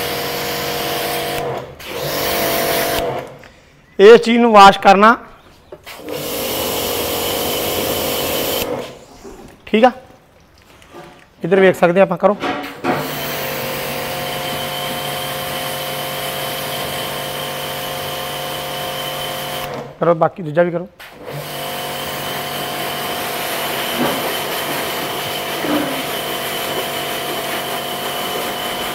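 A pressure washer motor hums steadily and stops now and then.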